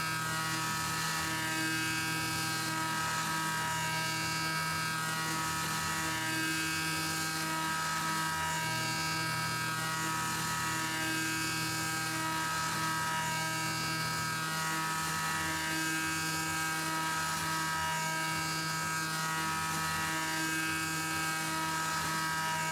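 A milling machine spindle whines steadily at high speed.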